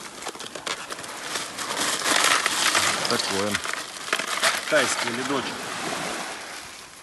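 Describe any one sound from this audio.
Ice cubes clatter and rattle into a plastic bucket.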